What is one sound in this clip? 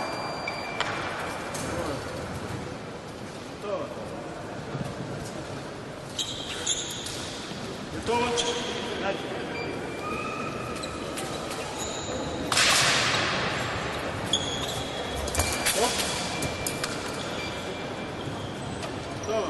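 Distant chatter echoes through a large hall.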